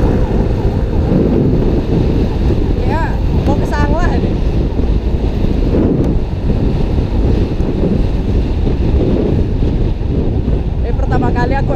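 Wind roars loudly against a microphone on a moving motorcycle.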